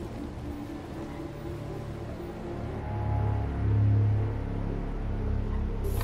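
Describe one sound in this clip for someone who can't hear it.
A car hums softly as it rolls slowly over snow.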